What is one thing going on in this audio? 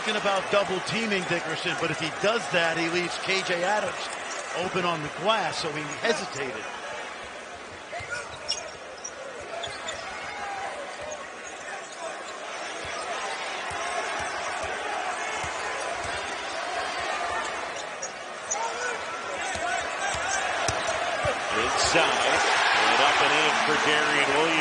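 A crowd cheers in a large echoing arena, growing louder.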